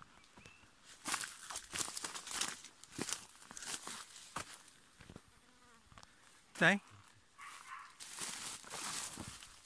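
Leaves and branches rustle and snap as someone pushes through dry brush.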